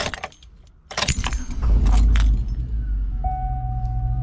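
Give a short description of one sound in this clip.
A car engine starts and idles with a low rumble.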